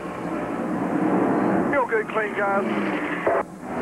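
An air wrench whirs in short bursts.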